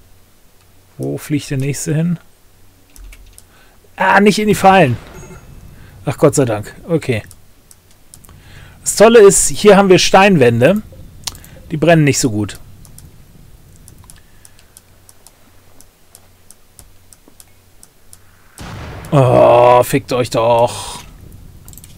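An older man talks calmly into a close microphone, in short bursts.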